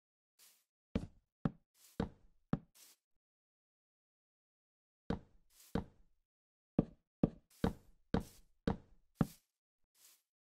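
Wooden blocks are placed with short hollow knocks.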